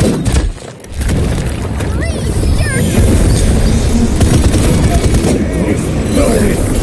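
Rapid gunfire blasts loudly and close.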